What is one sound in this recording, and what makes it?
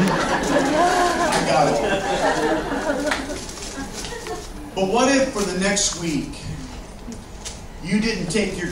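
A middle-aged man speaks with animation into a microphone, heard through a loudspeaker in an echoing hall.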